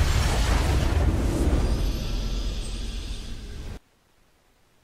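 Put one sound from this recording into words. A triumphant game victory fanfare booms and swells, then cuts off abruptly.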